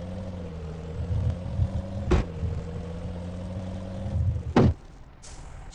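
A heavy truck engine drones steadily and rumbles as it revs.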